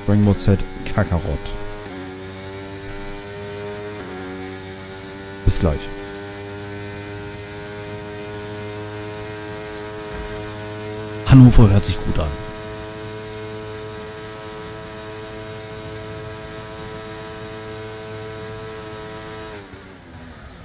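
A racing car engine whines at a steady high pitch.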